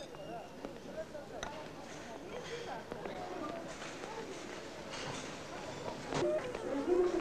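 A crowd murmurs indoors.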